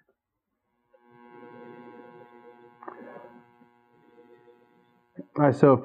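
A man sniffs and slurps wine.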